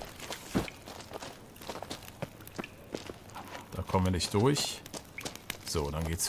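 Footsteps crunch on a dirt floor.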